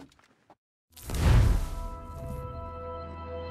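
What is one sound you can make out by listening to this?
A deep whoosh swells and quickly fades.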